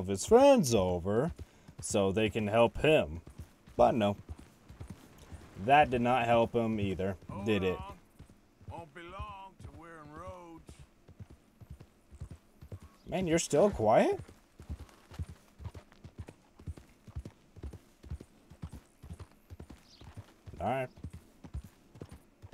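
A horse's hooves thud in a quick, steady rhythm.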